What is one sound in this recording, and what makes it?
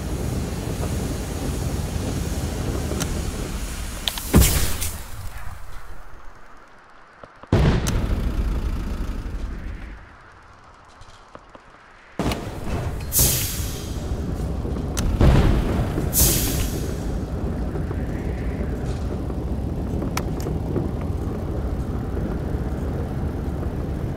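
A heavy vehicle's engine rumbles low and steadily, dropping away briefly now and then.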